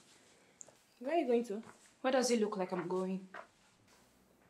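A woman speaks tensely up close.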